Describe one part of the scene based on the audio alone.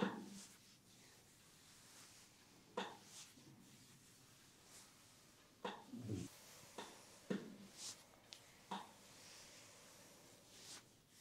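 Hands rub and press on skin and fabric in a massage, with soft brushing sounds.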